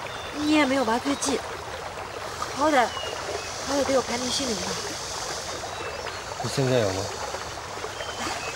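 A young man speaks quietly and calmly up close.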